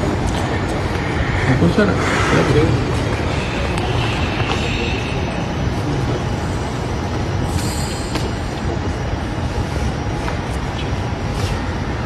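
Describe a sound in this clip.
Several men talk at once nearby, in a noisy echoing hall.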